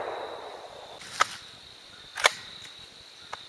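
A rifle's bolt clacks as it is worked.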